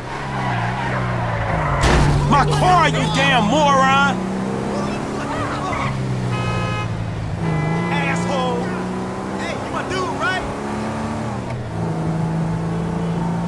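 A car engine hums steadily and rises and falls in pitch as it drives.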